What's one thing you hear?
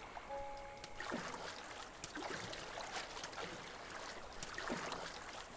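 Water splashes as a game character swims.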